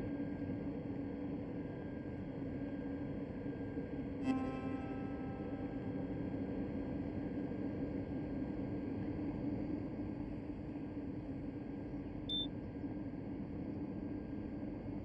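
A train hums steadily while standing at a platform.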